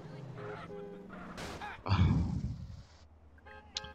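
A motorbike crashes with a thud.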